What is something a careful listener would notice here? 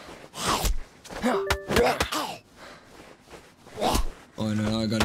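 Heavy blows thud against a body, again and again.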